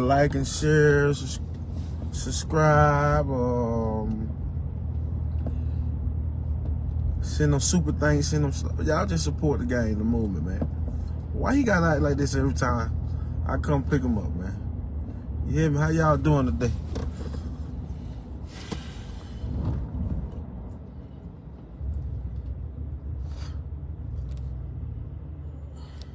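A car engine hums low and steady.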